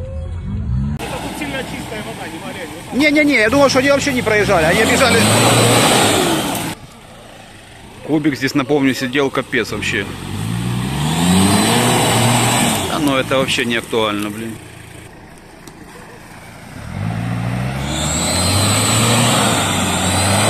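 An off-road vehicle's engine roars and revs hard as it churns through mud.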